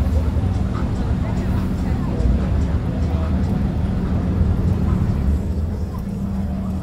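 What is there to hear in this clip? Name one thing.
A car engine idles with a deep, steady rumble close by.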